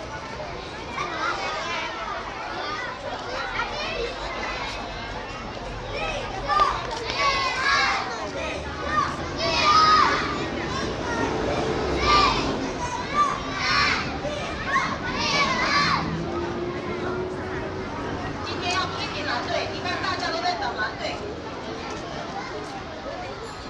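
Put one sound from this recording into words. Many young children chatter and call out nearby, outdoors.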